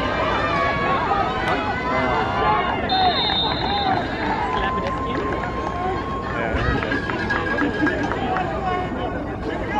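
A large outdoor crowd cheers and chatters loudly.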